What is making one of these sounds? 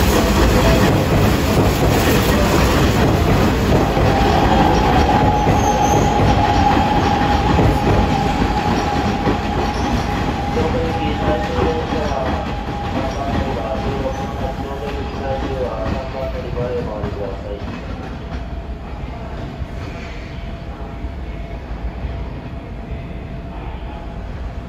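A train rumbles slowly along the tracks, gradually fading.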